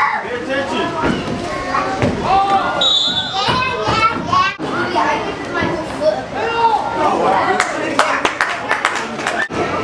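Spectators shout and cheer loudly nearby.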